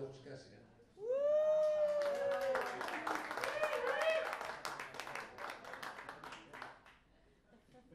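A woman sings into a microphone, holding long notes.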